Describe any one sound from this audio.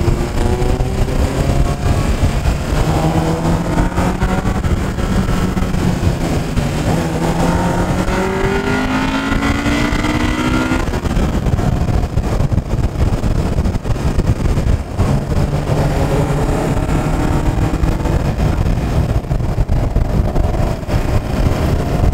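A car engine revs hard, its pitch climbing and dropping as it changes gear.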